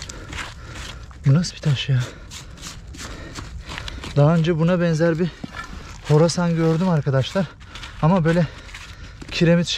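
Gloved hands scrape and crumble dry dirt and stones.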